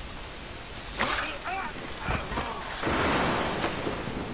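Blades strike with sudden sharp slashes.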